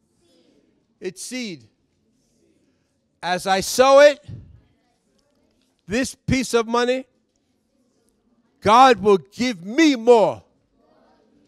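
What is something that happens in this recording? A man speaks with animation through a microphone and loudspeakers, in short bursts with pauses.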